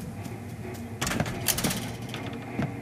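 A metal cage door clicks open.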